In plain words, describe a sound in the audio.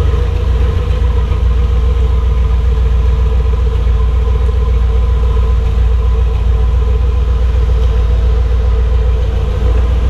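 A garage door rumbles and rattles as it rolls open.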